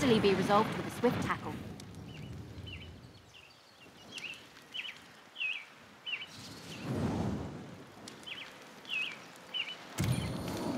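Wind rushes past in gusty whooshes.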